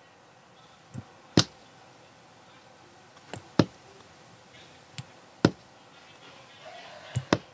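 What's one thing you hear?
A small plastic speaker box knocks faintly as it is handled.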